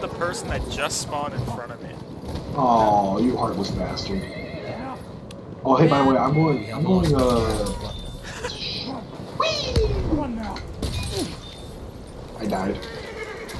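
A horse gallops on dirt.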